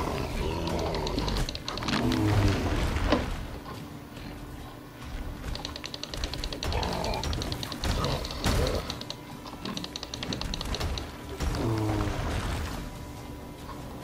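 A sword clashes and slashes in a fight.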